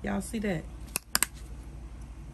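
A plastic bottle cap snaps shut.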